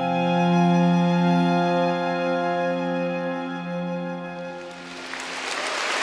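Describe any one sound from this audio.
An orchestra holds a final sustained chord that rings out and fades in a large hall.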